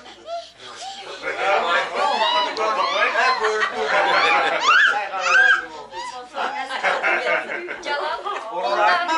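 Several women speak loudly and excitedly, overlapping one another.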